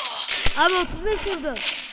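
Rapid gunshots ring out in quick bursts.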